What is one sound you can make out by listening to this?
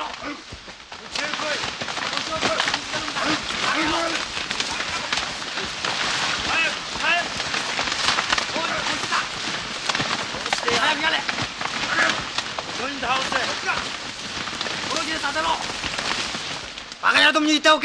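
Many feet crunch and rustle through dry stalks.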